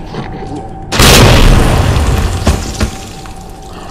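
A loud blast booms and rumbles.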